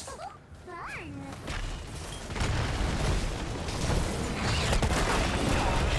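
Fantasy battle sounds of spells and blows clash and boom.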